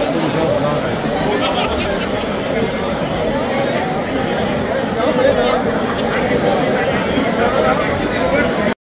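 A crowd of men and women chatters loudly.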